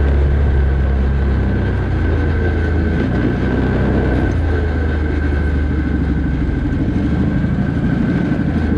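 A quad bike engine roars up close as it drives over a dirt track.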